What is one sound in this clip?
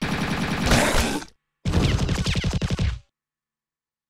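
Loud rock game music with electric guitar plays, then cuts off.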